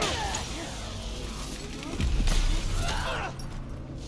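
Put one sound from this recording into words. Heavy blows and crashes thud during a fight.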